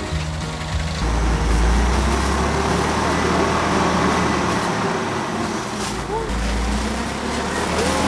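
A hydraulic lift whines as a truck bed tips up.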